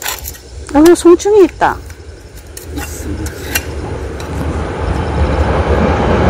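Gloved hands scrape and dig through loose, dry soil.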